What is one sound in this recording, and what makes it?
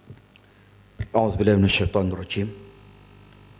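A man speaks briefly into a microphone with animation.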